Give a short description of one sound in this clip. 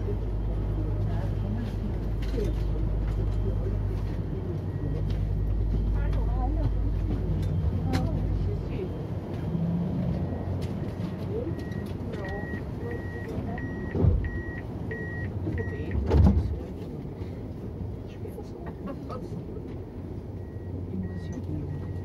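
A tram rumbles and hums steadily along its tracks, heard from inside.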